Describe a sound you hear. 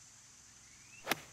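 A golf club swings and sharply strikes a ball.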